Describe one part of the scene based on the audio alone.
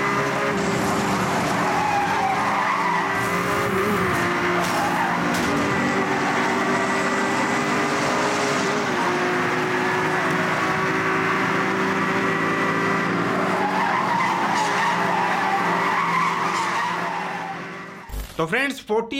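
A racing game's car engine roars steadily through speakers.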